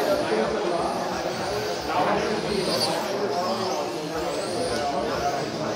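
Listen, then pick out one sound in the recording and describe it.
Small electric motors whine and rise in pitch as model cars race around.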